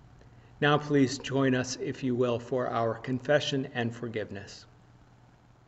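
A man speaks calmly and warmly, close to a microphone.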